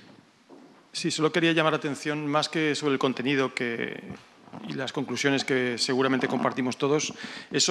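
A man speaks with animation through a loud microphone.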